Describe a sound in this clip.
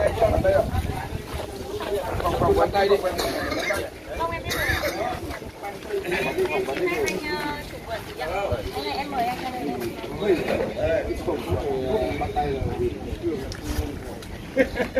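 Several men and women talk over one another outdoors.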